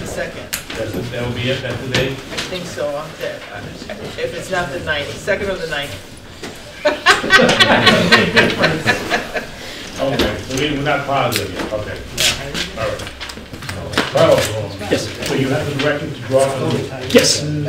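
Middle-aged men talk through a microphone in a room.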